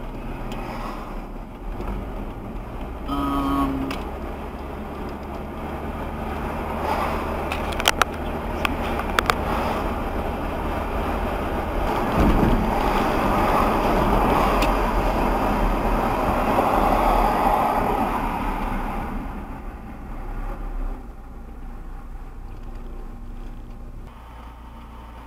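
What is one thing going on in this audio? Tyres roll on the road with a steady rushing noise.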